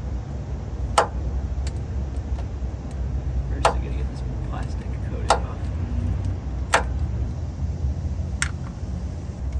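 Metal parts clink sharply under a vehicle.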